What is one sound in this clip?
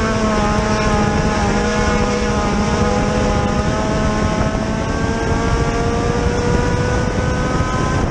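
Other race car engines snarl nearby.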